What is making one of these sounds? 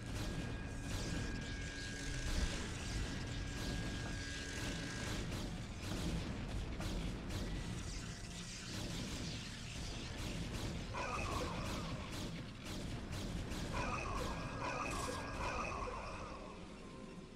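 Energy weapons zap and crackle in rapid bursts.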